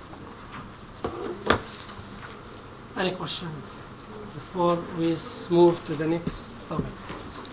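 A man lectures calmly through a microphone.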